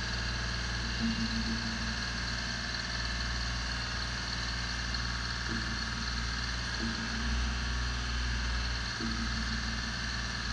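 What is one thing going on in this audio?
Hydraulics on a lift whine in short bursts as the boom lowers.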